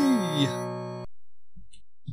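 A retro video game plays a short electronic jingle.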